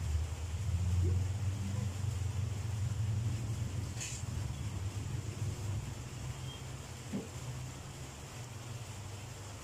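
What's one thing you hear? A plastic bowl scrapes and knocks on the floor.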